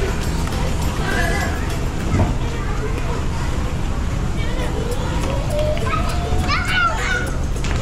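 Children shout and chatter in a busy, echoing room.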